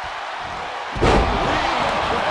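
A heavy body slams onto the wrestling mat with a loud thud.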